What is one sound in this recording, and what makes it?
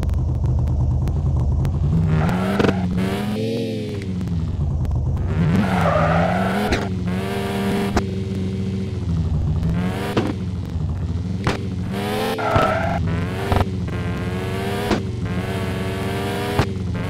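A car engine revs up and down steadily.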